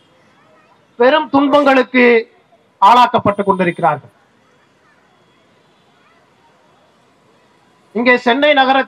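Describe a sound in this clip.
A man speaks forcefully into a microphone over a loudspeaker, with pauses between phrases.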